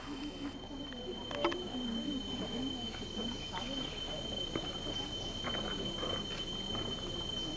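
A group of adults murmur and talk quietly nearby.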